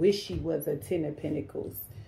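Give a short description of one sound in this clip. A card is set down on a table with a soft tap.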